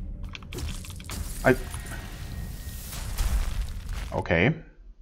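A fantasy video game battle plays with whooshing magic blasts and strikes.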